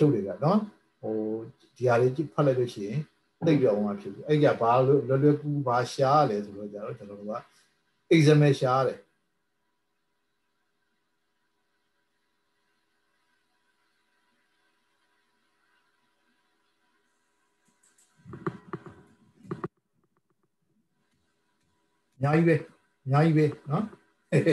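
A young man speaks calmly over an online call, pausing now and then.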